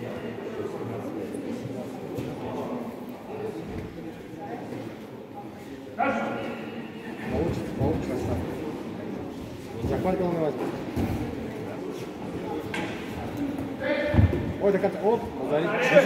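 Voices of men and women murmur and call out in a large echoing hall.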